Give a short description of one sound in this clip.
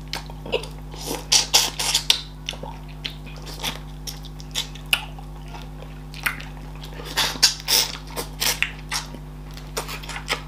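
A man chews and smacks his lips on soft, sticky food close to a microphone.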